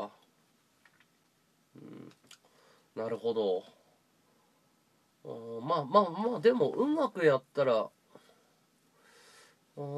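A man talks casually close by, in short bursts.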